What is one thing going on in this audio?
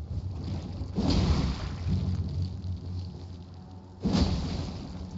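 A metal weapon strikes a creature with a heavy thud.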